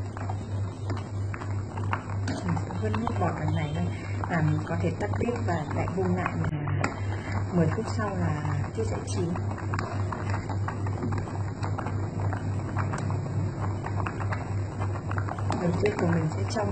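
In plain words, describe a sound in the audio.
A ladle stirs through bubbling water.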